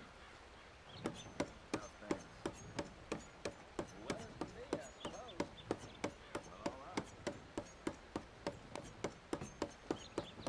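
A knife point taps rapidly and repeatedly on a wooden table.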